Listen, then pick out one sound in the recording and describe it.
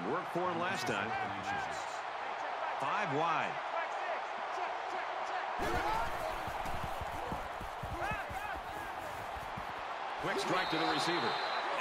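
A large crowd cheers and roars steadily in a big stadium.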